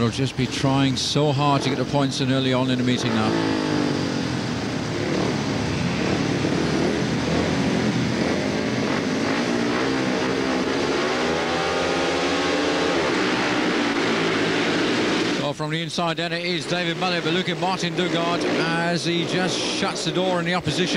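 Motorcycle engines rev loudly and roar.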